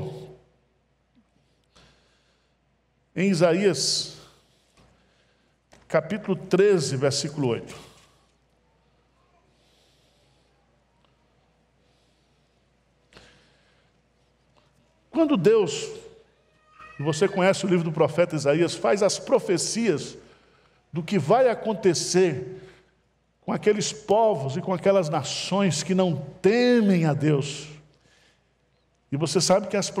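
A middle-aged man speaks calmly into a microphone in a large hall, with pauses between phrases.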